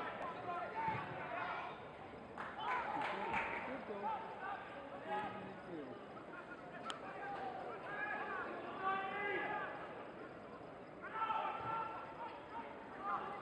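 Men shout and call out to each other across an open pitch outdoors.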